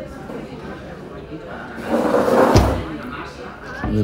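A wooden cabin door bumps and swings open.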